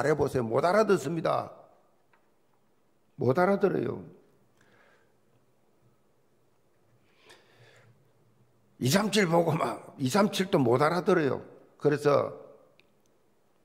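An elderly man speaks forcefully into a microphone in bursts, with pauses between.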